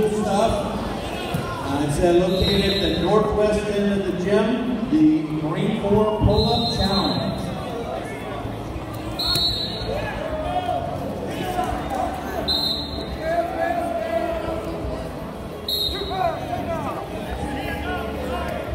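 Men shout and call out loudly in a large echoing hall.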